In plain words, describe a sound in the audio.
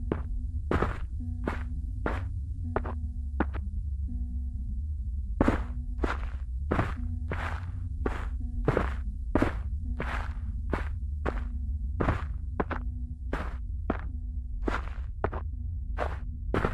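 Footsteps crunch through dry undergrowth.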